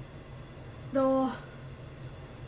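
A young girl gives a short, high vocal exclamation close by.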